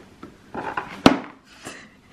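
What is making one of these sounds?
A metal spoon clinks against a ceramic plate.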